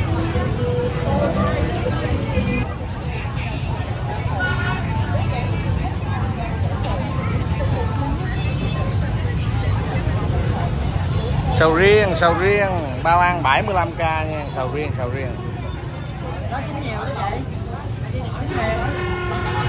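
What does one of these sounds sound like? A busy crowd murmurs and chatters all around.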